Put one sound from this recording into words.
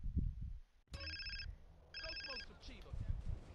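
A mobile phone rings with a repeating electronic tone.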